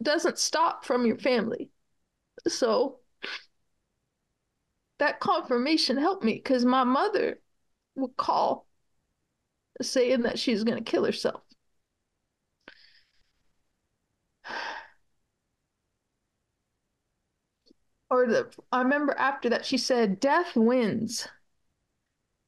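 A middle-aged woman talks with animation over an online call, in bursts with pauses.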